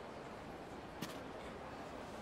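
A man cracks his knuckles.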